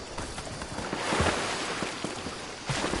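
Water splashes as a figure dives in.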